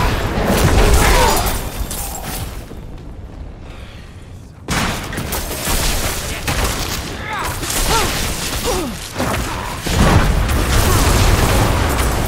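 Electric bolts crackle and zap.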